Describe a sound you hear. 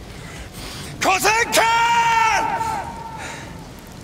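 A man shouts a long, loud battle cry.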